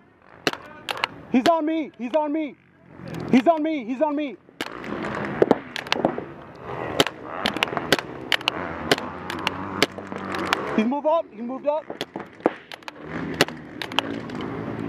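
A paintball gun fires rapid sharp pops close by.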